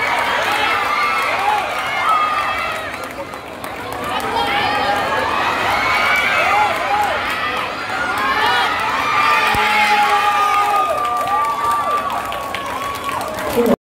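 A crowd of young people cheers and shouts loudly in a large echoing hall.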